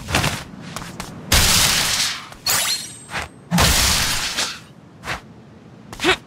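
Quick whooshes sound as a game character dashes and jumps.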